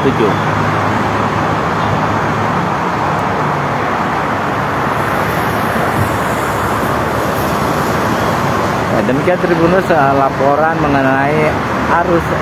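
Traffic roars steadily past on a busy highway.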